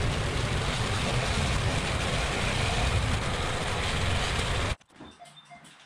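A van engine runs as the van reverses slowly.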